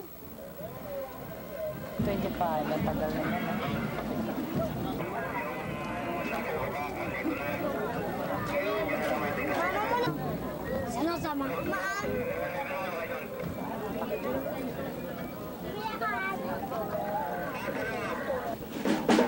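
A marching band plays loudly outdoors.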